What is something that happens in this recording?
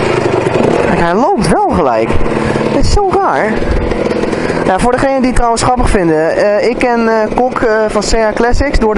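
A motorcycle engine revs up and down several times.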